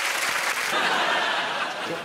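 A young woman laughs out loud nearby.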